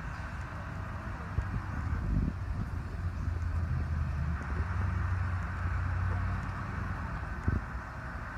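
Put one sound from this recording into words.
Peacocks peck and tap softly at the pavement.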